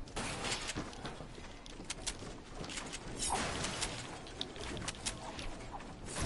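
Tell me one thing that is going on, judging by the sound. Building pieces snap into place with quick clacks.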